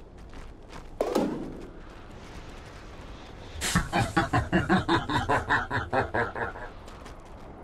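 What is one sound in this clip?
Video game fight sounds of spells and rapid hits play.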